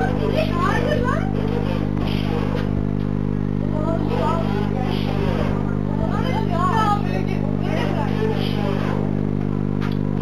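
Young people talk in low voices nearby.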